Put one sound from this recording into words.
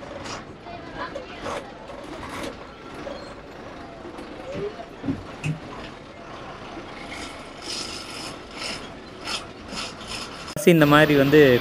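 A bus engine hums steadily while driving along a road.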